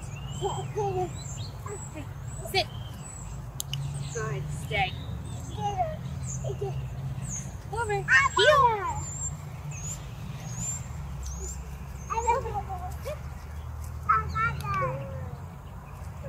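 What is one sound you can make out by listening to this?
A small child squeals and shouts happily.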